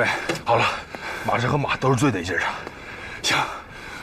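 A middle-aged man answers with animation.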